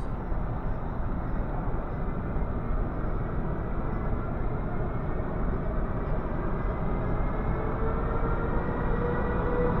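An electric train rumbles closer along the tracks, growing louder.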